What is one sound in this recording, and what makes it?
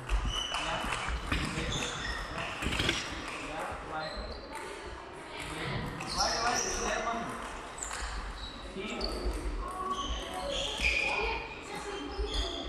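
A table tennis ball clicks against a paddle and the table in a large echoing hall.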